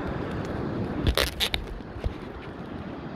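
A phone's microphone bumps and rustles as it is handled.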